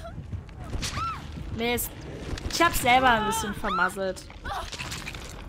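A young woman screams in terror, close by.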